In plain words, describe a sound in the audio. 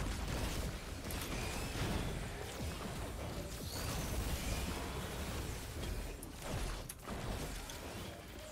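Magic spell effects whoosh and crackle.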